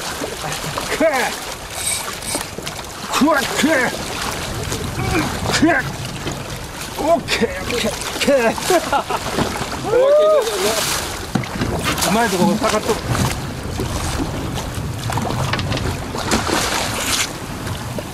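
A large fish thrashes and splashes loudly in the water.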